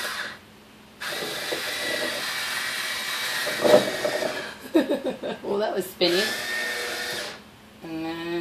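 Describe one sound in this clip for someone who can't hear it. A small electric pump on a bottle whirs with a steady hiss.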